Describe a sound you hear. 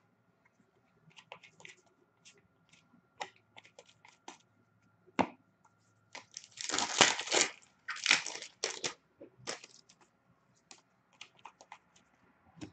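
Cards riffle and tap as they are shuffled in the hands.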